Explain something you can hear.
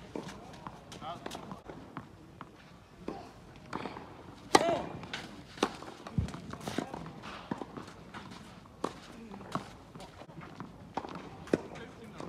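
A tennis ball is struck sharply with a racket, again and again.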